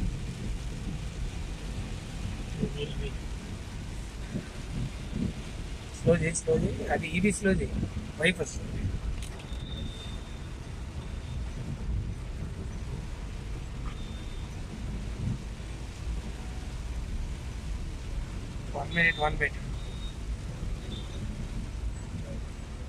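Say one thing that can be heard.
A car engine hums steadily while driving in the rain.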